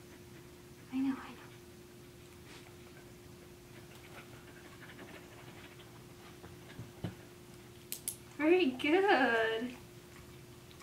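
A dog yelps and whines close by.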